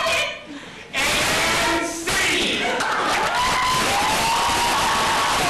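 A man sings loudly on a stage.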